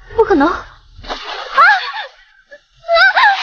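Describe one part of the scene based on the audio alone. A young woman cries out in alarm.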